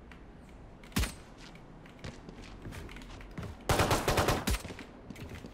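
A pistol fires sharp shots.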